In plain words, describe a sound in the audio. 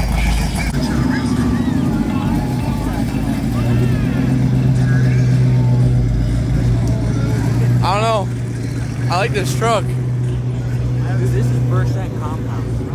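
A sports car engine burbles with a deep, throaty idle as it drives past.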